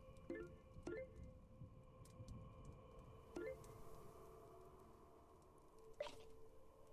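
Short electronic chimes ring out several times.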